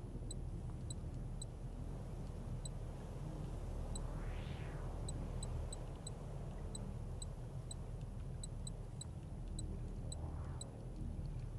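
Menu clicks tick softly, one after another.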